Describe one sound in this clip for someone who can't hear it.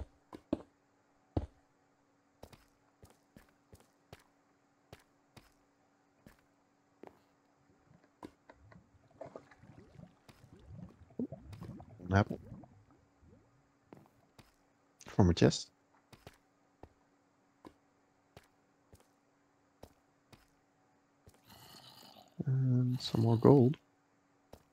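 Footsteps tap on stone at a steady walking pace.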